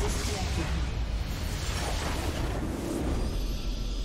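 Magic blasts crackle and whoosh loudly.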